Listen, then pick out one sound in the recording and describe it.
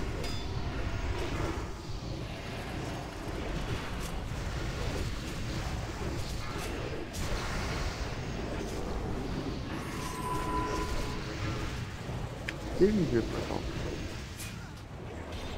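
Spells crackle and weapons clash in a busy game battle.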